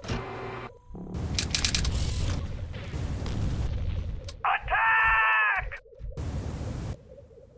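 A gun fires energy shots in short bursts.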